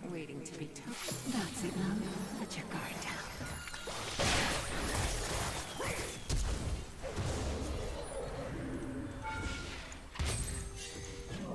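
Game spell effects burst and crackle during a fight.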